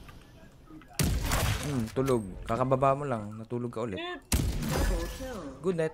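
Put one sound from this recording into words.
A sniper rifle fires in a video game.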